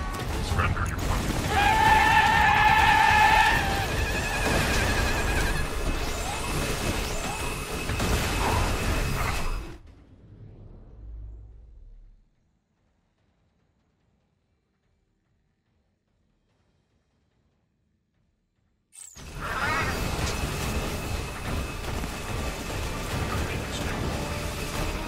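Rapid gunfire rattles with heavy blasts.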